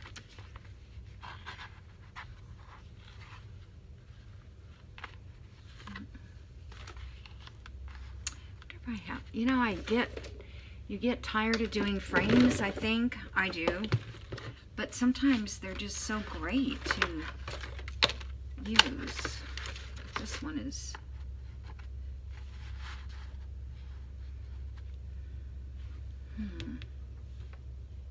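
Paper and card rustle and slide as they are handled.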